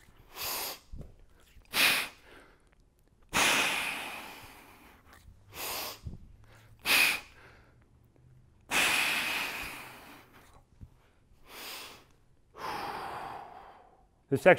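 A man exhales in sharp, breathy bursts.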